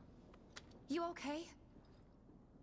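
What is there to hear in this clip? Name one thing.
A young woman asks a short question softly.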